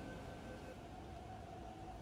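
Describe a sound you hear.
A subway train idles with a low hum at an echoing platform.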